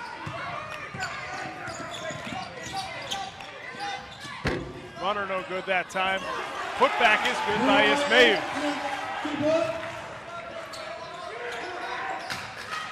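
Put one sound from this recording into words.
A basketball bounces on a hardwood floor in an echoing gym.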